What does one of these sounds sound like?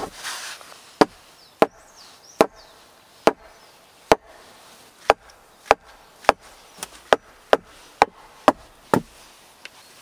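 A knife shaves a stick in sharp, quick strokes.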